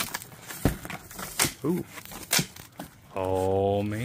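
Cardboard flaps rustle and thump as a box is opened.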